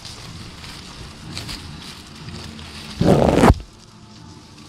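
Dry corn stalks rustle and crackle close by.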